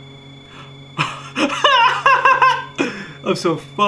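A young man laughs into a close microphone.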